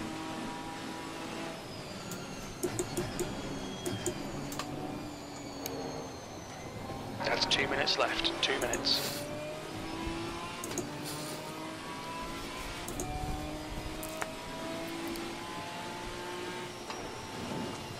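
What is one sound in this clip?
A race car engine revs up and down through the gears.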